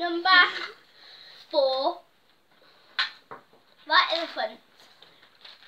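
Two young girls talk and exclaim excitedly, close by.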